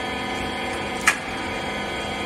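A metal part clanks once sharply as a worker handles the machine.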